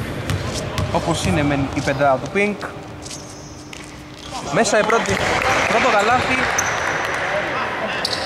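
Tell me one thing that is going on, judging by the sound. Young men shout and call out to each other on a court.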